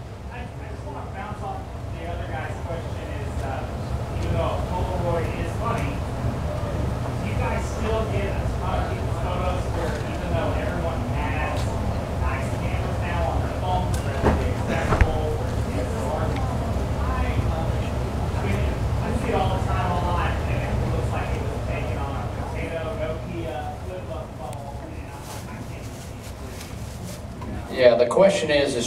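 A young man speaks with animation through a microphone in a large echoing hall.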